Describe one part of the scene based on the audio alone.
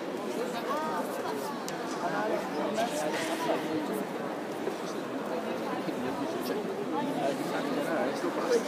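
Men and women talk at a distance in a large echoing hall.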